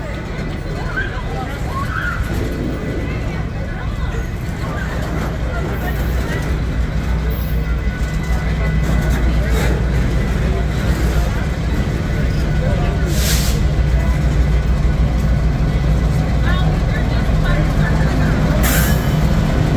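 Freight car wheels squeal and screech against the rails.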